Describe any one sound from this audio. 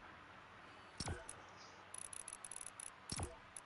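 Short electronic menu clicks and chimes sound.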